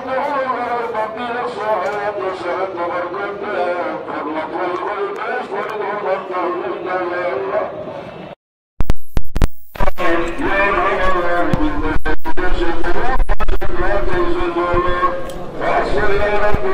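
A large crowd of men chants together in unison outdoors.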